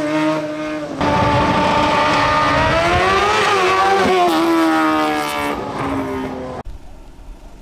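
A second race car engine screams at high revs as it accelerates away.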